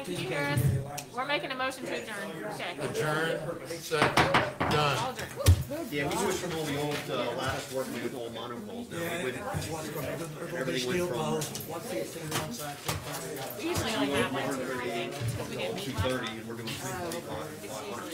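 Several men and women talk over one another in a room with echo.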